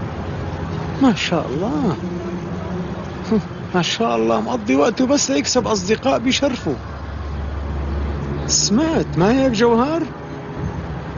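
A middle-aged man speaks forcefully, close by.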